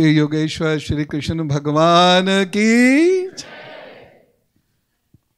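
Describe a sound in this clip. A man sings loudly into a microphone, his voice gliding upward.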